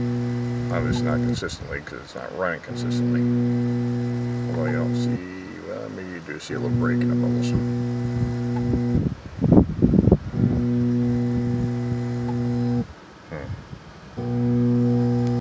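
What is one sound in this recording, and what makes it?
A motor hums steadily, cutting out and starting again several times.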